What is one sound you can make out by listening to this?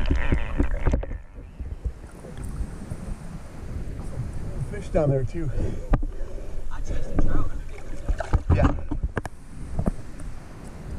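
Water laps and splashes against rocks outdoors.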